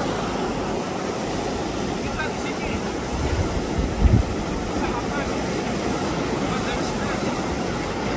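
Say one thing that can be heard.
A middle-aged man speaks loudly over the surf.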